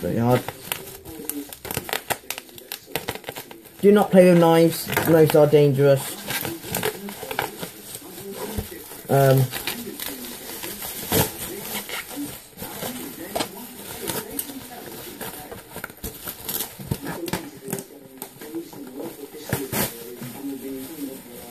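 Plastic bubble wrap crinkles and rustles as it is unwrapped.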